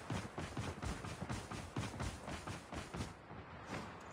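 Footsteps patter quickly on the ground.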